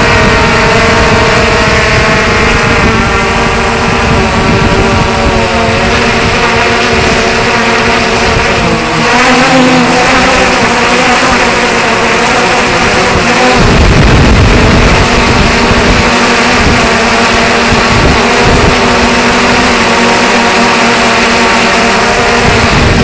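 Drone propellers whir with a steady high buzz.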